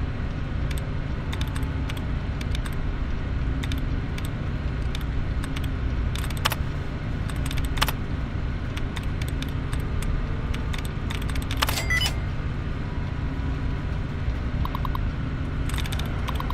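A computer terminal gives short, dry clicks in quick bursts.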